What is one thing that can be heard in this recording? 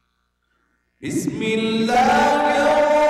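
A man chants loudly in a melodic voice through a microphone, echoing in a large hall.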